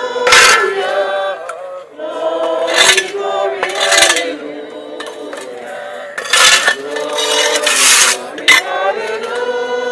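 A crowd of men and women sings together outdoors.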